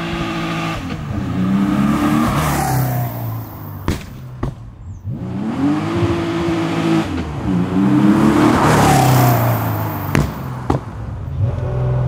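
A sports car engine roars and revs as the car speeds past close by.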